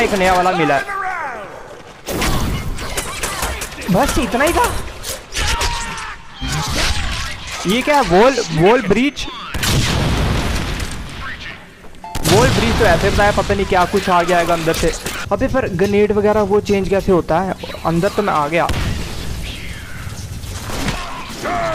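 Game combat clashes and thuds with loud impacts.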